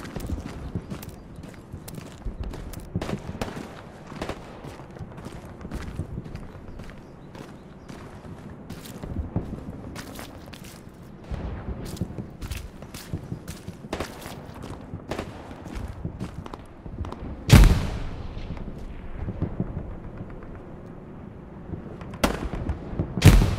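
Footsteps crunch steadily over dry ground and twigs.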